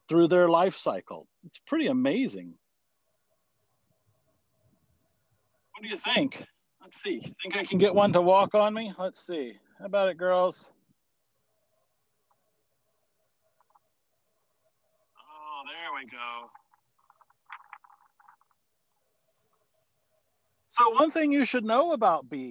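A man talks calmly, close by, heard through an online call, pausing now and then.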